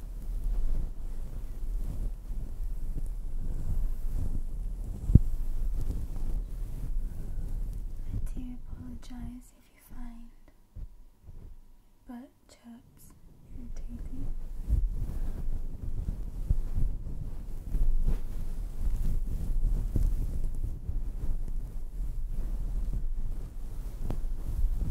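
Fingers rub and scratch a fluffy microphone cover up close, with deep muffled rustling.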